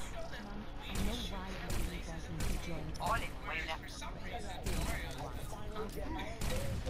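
Pistols fire in quick shots.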